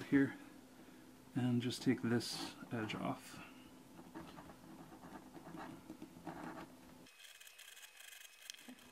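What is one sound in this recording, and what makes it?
A small blade scrapes softly along the edge of leather.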